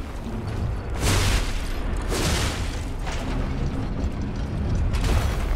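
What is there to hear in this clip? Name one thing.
A sword swings with sharp whooshing bursts.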